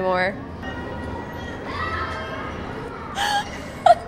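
A young woman laughs.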